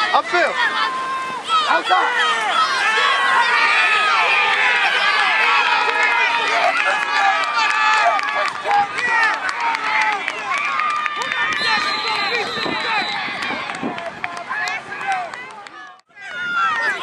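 A crowd of children and adults shouts and cheers outdoors.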